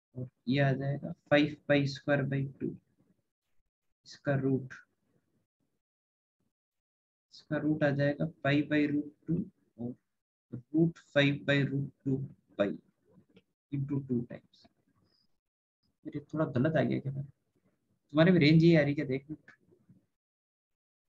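A man explains calmly through a close microphone, in short bursts with pauses.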